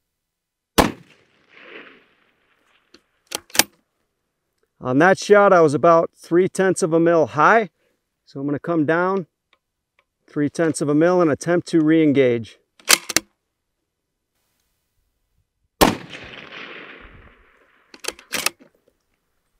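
A rifle fires with a sharp crack.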